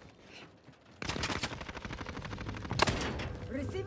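Rapid gunshots fire from an automatic rifle.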